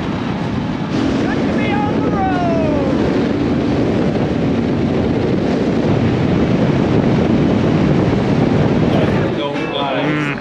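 A motorcycle engine drones steadily on the move.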